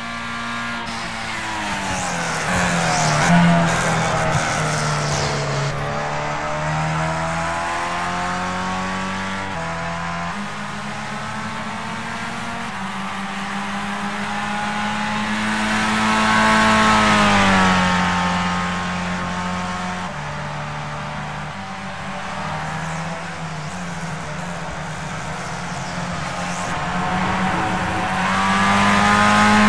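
A racing car engine screams at high revs, rising and falling as the car shifts gears and brakes for corners.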